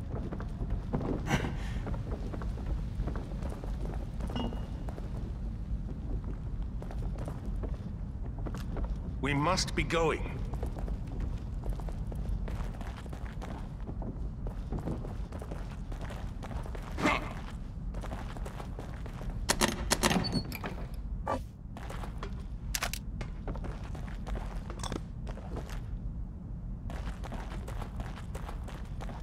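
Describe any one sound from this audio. Footsteps thud on creaking wooden stairs and floorboards.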